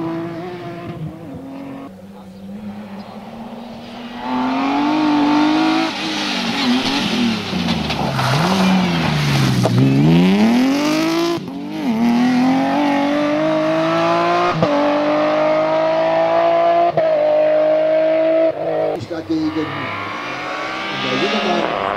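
A rally car engine roars and revs hard as the car races past.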